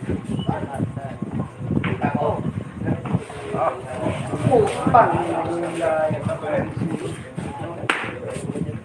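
Several people chat nearby.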